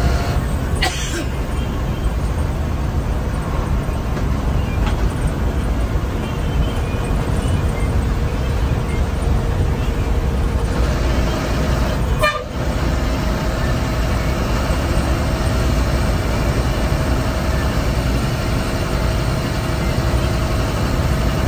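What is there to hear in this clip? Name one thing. A large vehicle's engine rumbles steadily from inside as it drives along a road.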